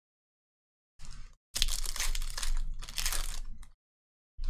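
A foil wrapper crinkles and tears as a pack is opened.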